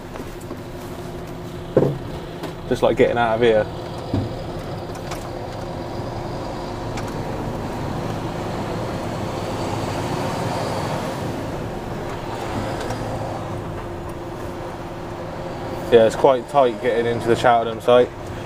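A truck's diesel engine hums steadily.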